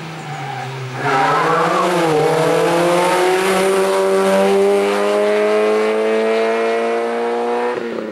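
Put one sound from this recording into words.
A rally car engine roars loudly past close by and climbs steadily in pitch as it speeds away.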